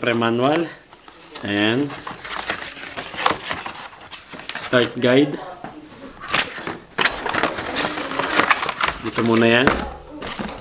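Paper and cardboard rustle and crinkle as a box is unpacked by hand.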